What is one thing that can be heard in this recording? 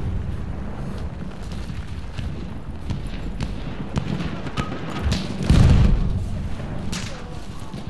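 An anti-aircraft gun fires rapid bursts.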